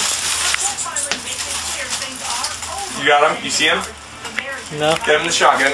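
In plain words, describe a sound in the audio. Aluminium foil crinkles and rustles.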